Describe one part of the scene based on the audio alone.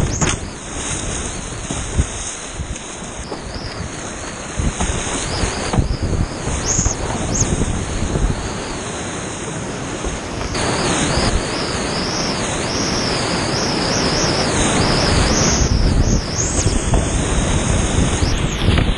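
Whitewater rapids roar loudly and close by, growing louder toward the end.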